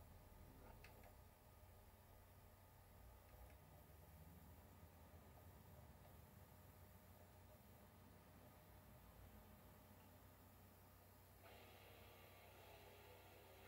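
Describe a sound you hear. Faint game music plays from a television speaker.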